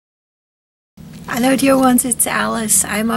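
An elderly woman speaks calmly and cheerfully, close by.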